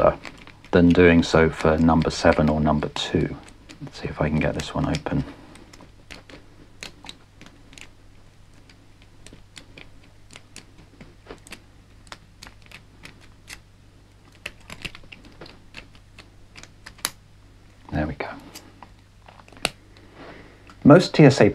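Small metal picks tick and click inside a padlock.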